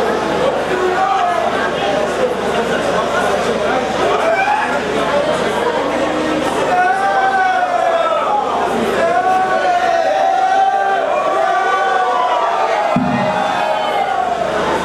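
A man speaks loudly and with animation in an echoing hall.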